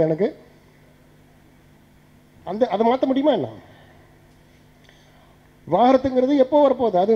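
An elderly man speaks with animation into a microphone, with pauses between phrases.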